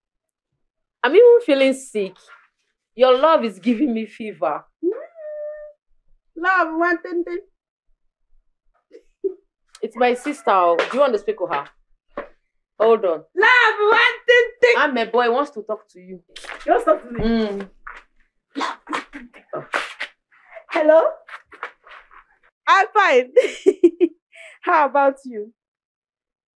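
A young woman talks with animation on a phone, close by.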